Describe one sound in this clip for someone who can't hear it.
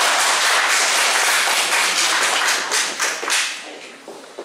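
An audience claps and applauds in an echoing hall.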